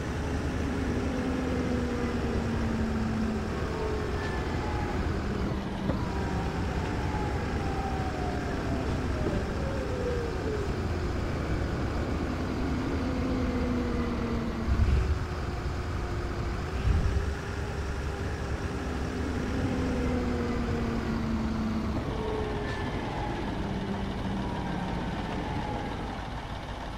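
A bus engine hums steadily.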